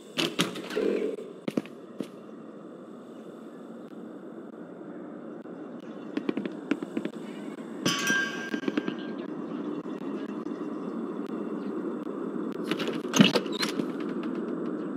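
Footsteps thud on hard stairs indoors.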